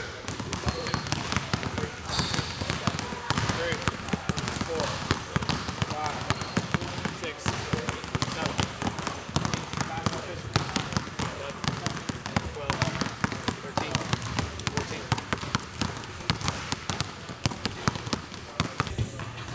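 A basketball bounces rapidly on a hard wooden floor in an echoing hall.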